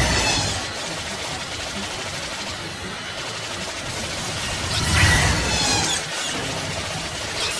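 Laser blasts fire in quick bursts.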